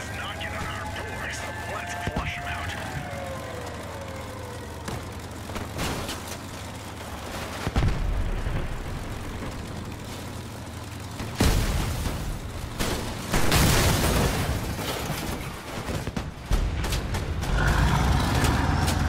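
An armoured vehicle's engine roars as it drives over rough ground.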